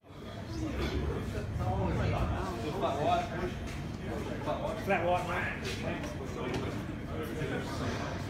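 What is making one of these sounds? Young men answer briefly.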